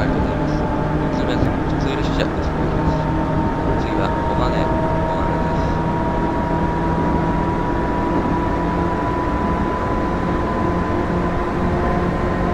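A train's motors hum steadily as it rolls along the track.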